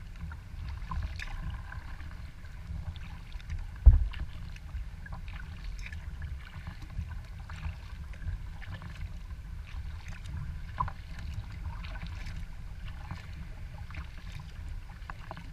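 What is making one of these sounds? Water splashes and laps against the hull of a kayak gliding forward.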